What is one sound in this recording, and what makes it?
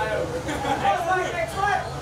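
A young man laughs heartily close by.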